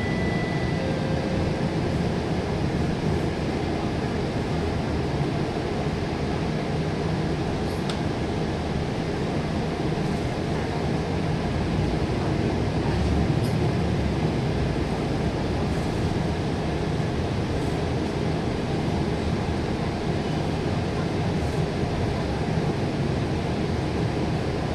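Traffic passes on the road outside.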